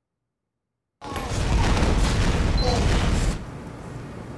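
A gun fires in a rapid, loud burst.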